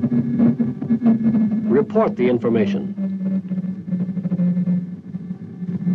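A young man speaks urgently into a telephone.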